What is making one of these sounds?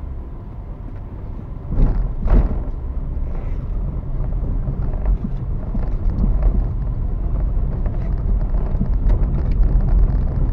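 Tyres roll over bumpy pavement with knocks and rattles.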